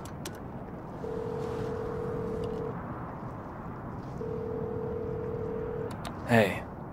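A phone ringback tone sounds twice through a payphone receiver.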